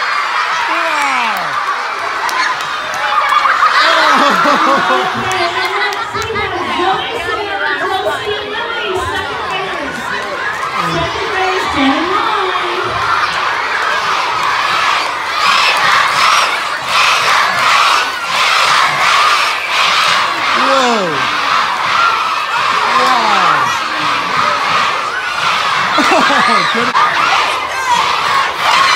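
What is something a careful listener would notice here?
Children shout and scream excitedly nearby.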